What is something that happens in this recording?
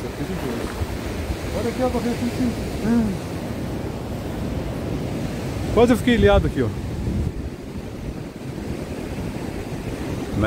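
Sea waves wash in and break against rocks.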